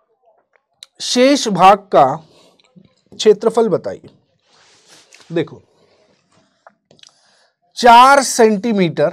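A man speaks clearly into a microphone, explaining in a lecturing tone.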